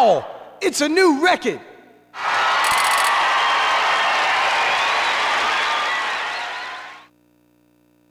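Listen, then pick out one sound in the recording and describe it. Electronic game sound effects play loudly, then stop.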